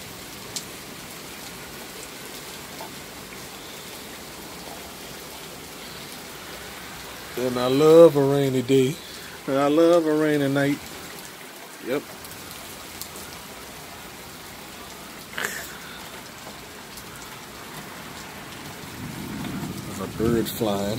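Rain falls on pavement and a wet street outdoors.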